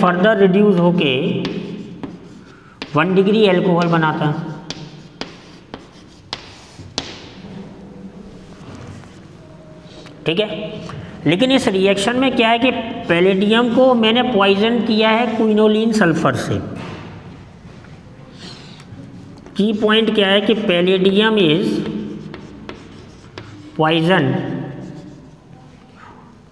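A man speaks clearly and steadily, as if explaining, close by.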